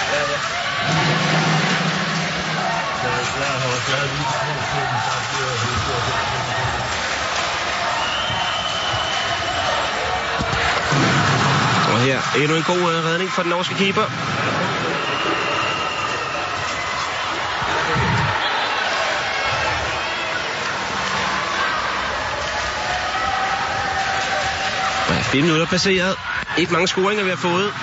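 A large crowd cheers and chants in a big echoing hall.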